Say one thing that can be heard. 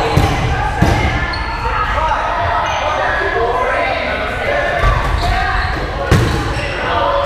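Rubber dodgeballs thump on a wooden floor in an echoing gym.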